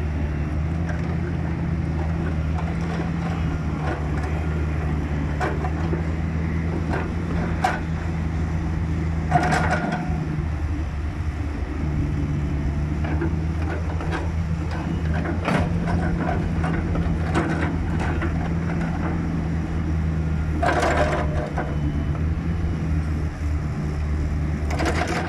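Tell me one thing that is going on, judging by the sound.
Metal clanks and squeaks as a digger bucket swings.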